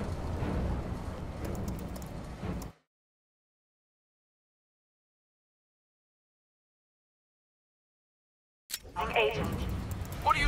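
Keys click and tap on a console keyboard.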